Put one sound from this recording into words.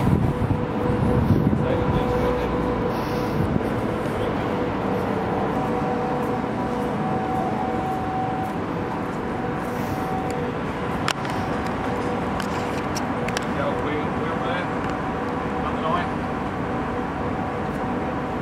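Wind blows steadily outdoors, gusting loudest at first.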